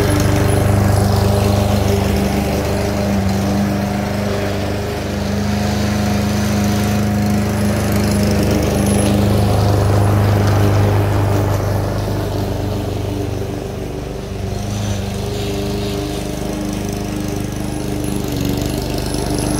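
A petrol lawn mower engine drones steadily, louder up close and softer as it moves away.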